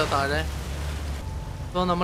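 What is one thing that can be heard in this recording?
Tyres splash through water.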